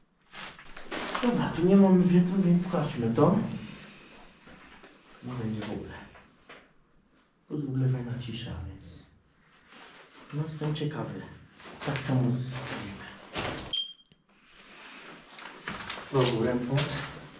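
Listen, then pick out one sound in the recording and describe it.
A young man talks in a dark, echoing room.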